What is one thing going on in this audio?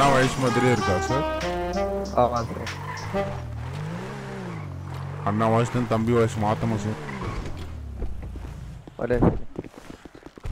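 A car engine revs up and down as the car drives.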